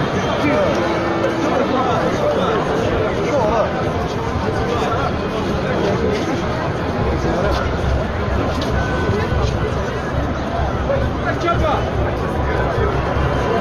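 A large crowd of men and women chants and shouts outdoors.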